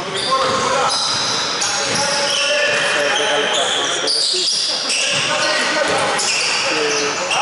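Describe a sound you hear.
Sneakers squeak on a hardwood court in an echoing hall.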